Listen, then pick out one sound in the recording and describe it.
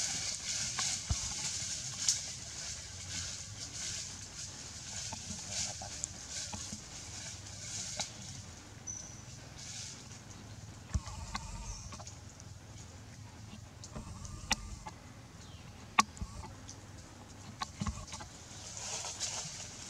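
Dry leaves rustle and crackle as a baby monkey picks at them on the ground.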